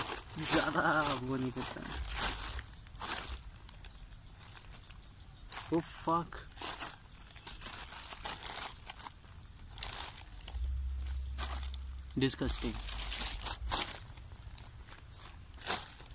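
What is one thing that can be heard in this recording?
A plastic package crinkles and rustles as it is torn open.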